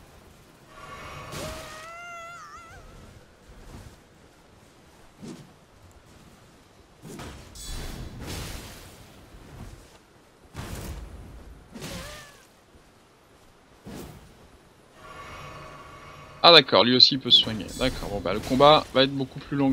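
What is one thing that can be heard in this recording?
A sword swings with sharp whooshes and metal clangs.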